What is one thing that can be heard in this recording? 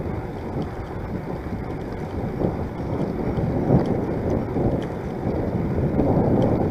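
Wind buffets a microphone outdoors, rumbling steadily.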